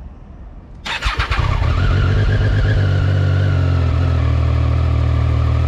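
A motorcycle engine starts and idles with a steady low rumble.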